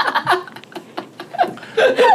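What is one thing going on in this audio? Several people laugh together.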